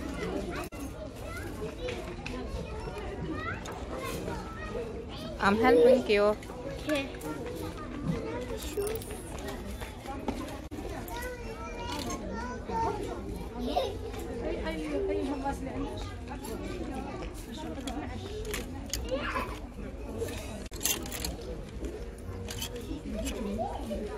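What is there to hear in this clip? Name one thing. A girl talks with animation close by.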